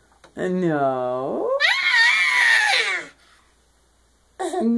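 A toddler laughs loudly.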